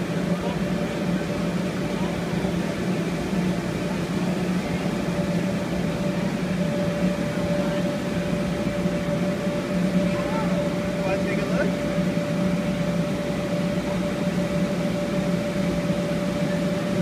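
A blower motor hums steadily nearby.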